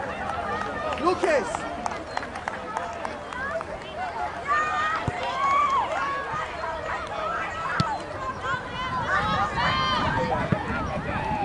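Young women shout and call out to each other across an open field outdoors.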